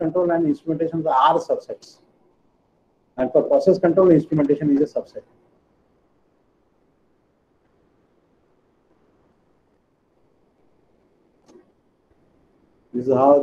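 A man lectures calmly over an online call.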